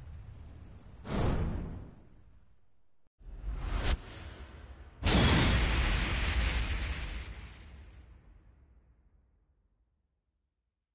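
A loud whooshing burst booms and slowly fades away.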